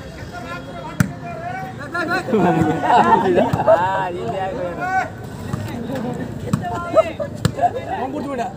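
A ball is struck with sharp thuds.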